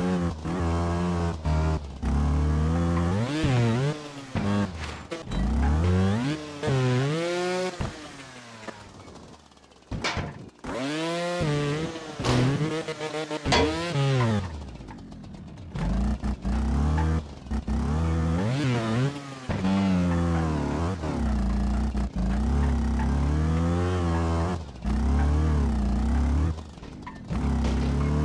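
A motorbike engine revs up and down again and again.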